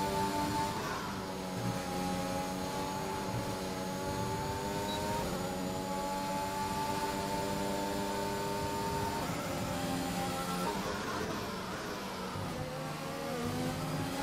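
A racing car engine screams at high revs, shifting gears up and down.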